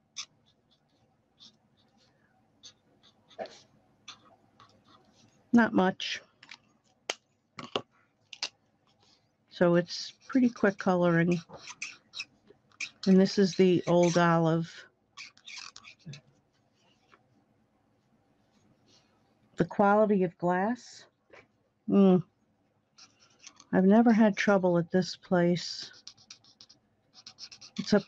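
A marker pen scratches softly on card.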